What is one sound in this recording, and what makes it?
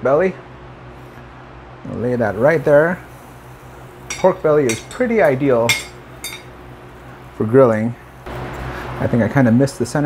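Metal tongs clink against a wire grill.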